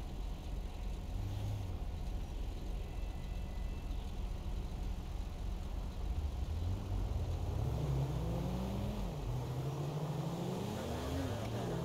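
A car engine hums low and steady while driving, rising and falling in pitch as it speeds up.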